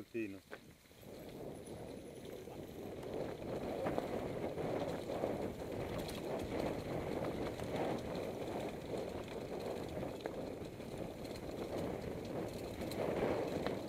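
A bicycle rattles as it bumps over the trail.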